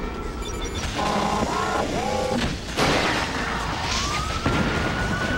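Machinery whirs and clanks.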